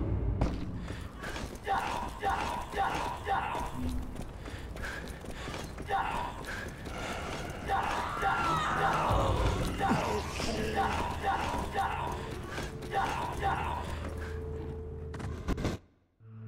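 Quick footsteps run over stone paving.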